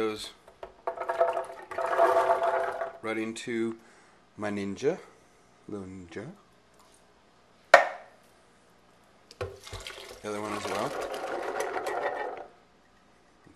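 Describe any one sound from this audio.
Chickpeas and liquid splash from a can into a blender jar.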